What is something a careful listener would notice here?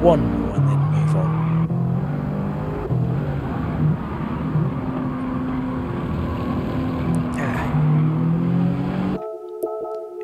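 Racing car engines roar at high speed, shifting gears.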